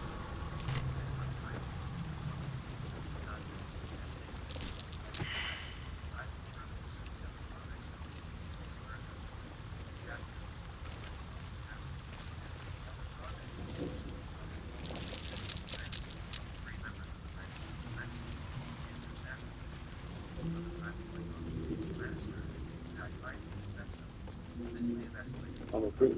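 Footsteps crunch over stone and gravel.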